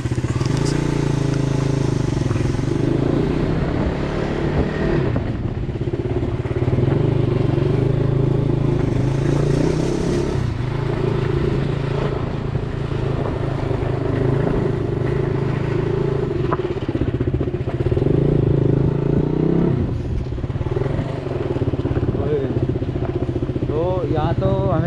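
A motorcycle engine hums steadily up close, rising and falling as the rider speeds up and slows down.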